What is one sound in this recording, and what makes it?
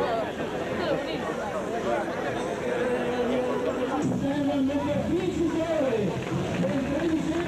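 A crowd of men chatters outdoors nearby.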